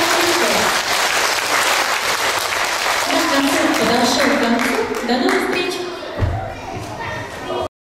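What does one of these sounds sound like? A crowd of children chatter loudly in an echoing hall.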